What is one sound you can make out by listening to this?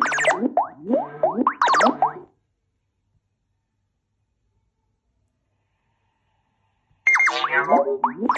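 Bubbly electronic game sound effects play in quick sliding bursts.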